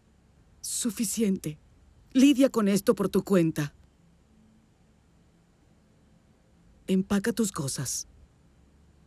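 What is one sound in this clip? A woman speaks quietly and tensely, close by.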